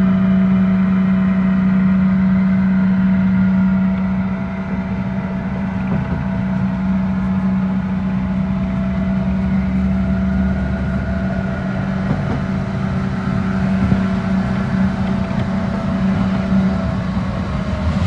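A fairground ride's motor hums steadily as the ride turns.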